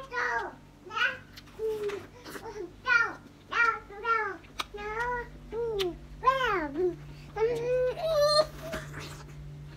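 A young man sings in a lively, wavering voice close by.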